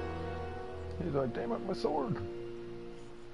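A man speaks briefly in a low voice.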